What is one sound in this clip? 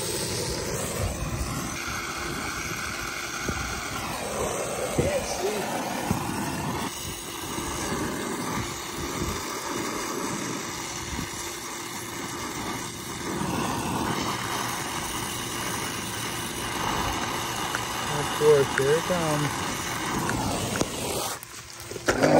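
A gas torch roars.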